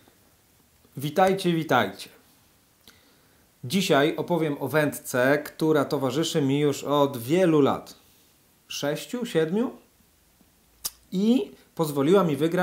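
A young man talks calmly and with animation, close to a microphone.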